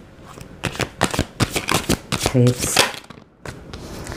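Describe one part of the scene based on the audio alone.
A deck of cards is shuffled by hand.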